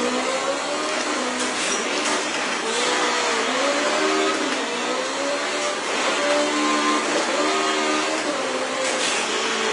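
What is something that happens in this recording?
A racing car engine revs up and down through loudspeakers.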